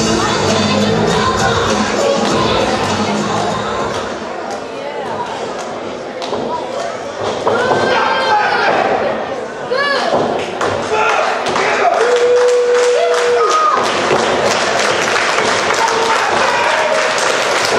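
A crowd of spectators cheers and chatters loudly in a large echoing hall.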